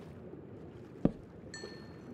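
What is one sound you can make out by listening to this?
A block is set down with a short, sharp knock.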